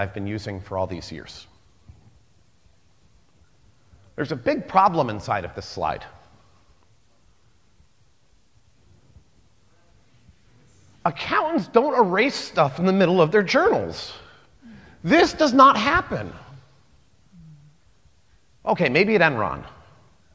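A man speaks calmly through a microphone in a large hall, pausing between phrases.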